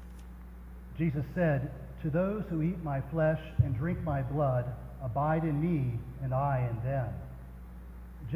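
An elderly man reads aloud calmly into a microphone in an echoing hall.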